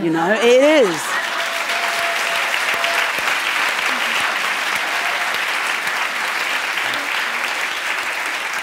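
Applause fills a hall.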